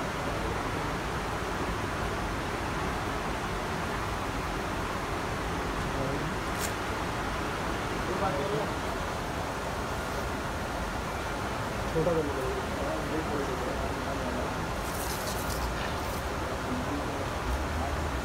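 Fabric rustles as trousers are folded.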